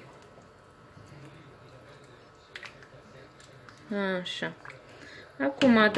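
A spoon stirs stew in a pot.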